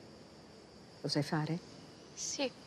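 An older woman asks a question calmly, close by.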